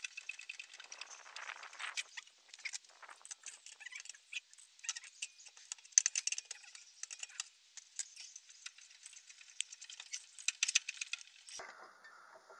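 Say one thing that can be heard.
A lug wrench clanks and scrapes against the wheel nuts.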